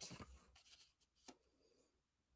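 Paper rustles and slides softly on a table.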